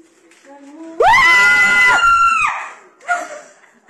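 A young woman screams loudly and close by.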